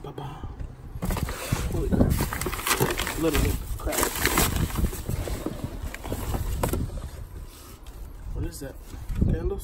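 Papers and cardboard rustle as hands dig through a box.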